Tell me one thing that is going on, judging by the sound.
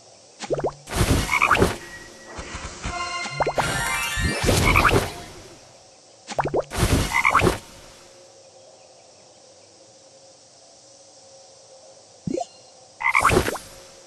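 Cartoon bubbles shoot and pop with bright chiming sounds in bursts.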